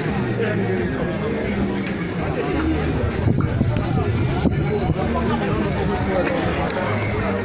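A crowd of men and women chatter at a distance outdoors.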